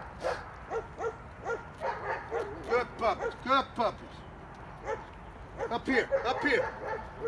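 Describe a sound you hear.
Puppies whine and yelp in short, high bursts.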